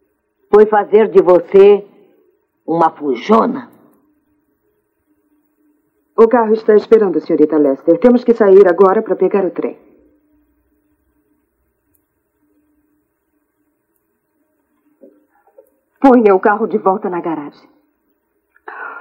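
A woman speaks tensely, close by, in short bursts.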